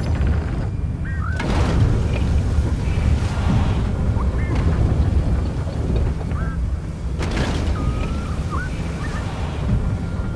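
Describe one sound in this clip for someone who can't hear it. Short, high musical chirps ring out now and then.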